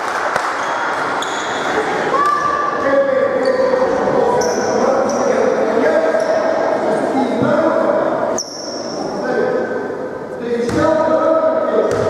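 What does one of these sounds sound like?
Sneakers squeak sharply on a hard court in a large echoing hall.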